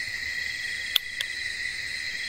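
A wooden pole knocks sharply a couple of times.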